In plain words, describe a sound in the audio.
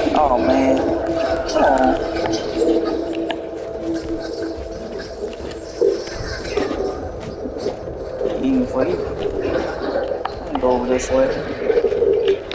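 A magic beam crackles and hums in bursts.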